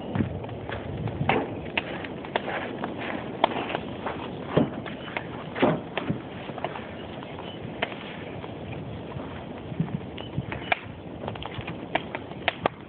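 A large wood fire roars, crackling and popping.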